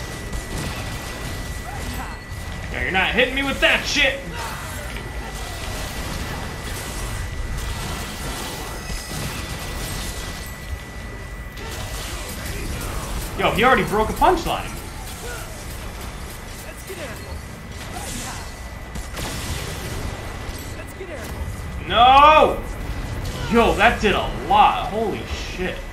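Magical blasts and crashes rumble through a fierce battle.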